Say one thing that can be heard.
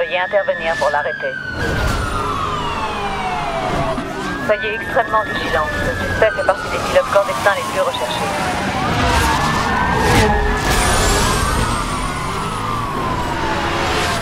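Police sirens wail, rising and falling over and over.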